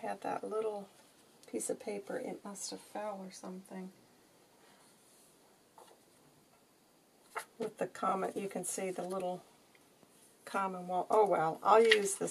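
Stiff paper cards rustle and tap as they are handled.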